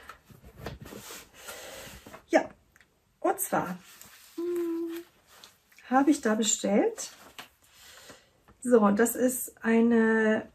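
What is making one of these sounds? Balls of yarn rustle as they are handled.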